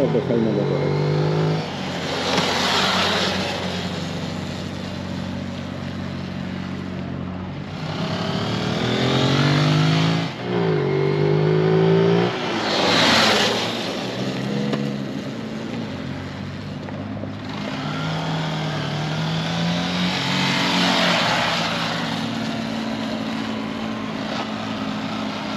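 A motorcycle engine hums and revs up and down nearby, outdoors.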